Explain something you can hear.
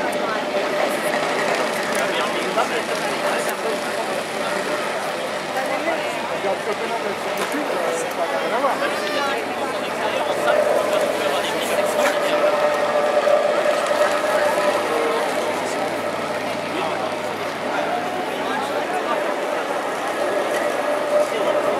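A crowd of spectators chatters throughout in a large echoing arena.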